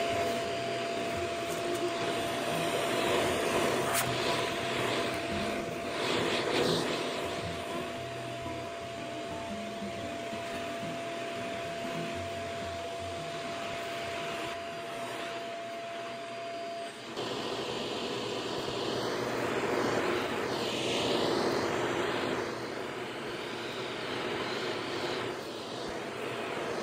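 A vacuum cleaner hums steadily as it sucks up debris.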